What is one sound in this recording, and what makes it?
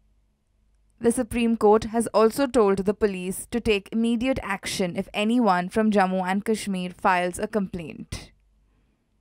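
A young woman speaks clearly and evenly, close to a microphone.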